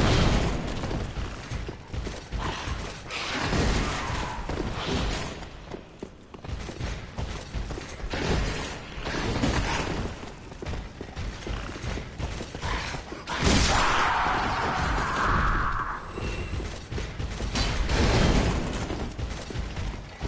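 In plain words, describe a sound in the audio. Swords clash and slash with heavy impacts.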